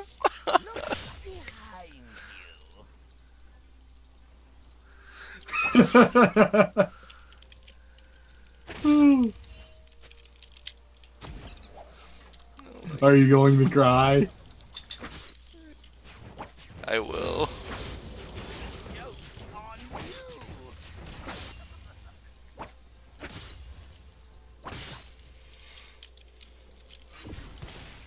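Short magical zaps and hits crackle in a fast game battle.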